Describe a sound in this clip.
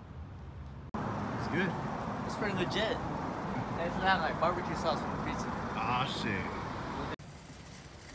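A teenage boy talks with animation outdoors.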